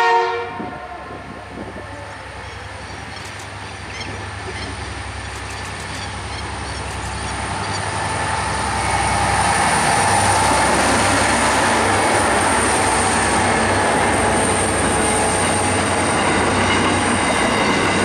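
Diesel-electric freight locomotives approach and pass with a deep engine rumble.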